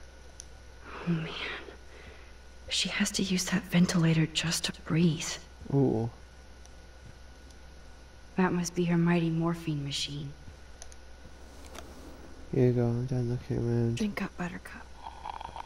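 A young woman speaks softly and thoughtfully.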